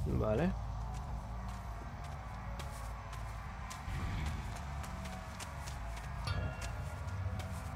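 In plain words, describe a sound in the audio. Footsteps crunch slowly on soft ground.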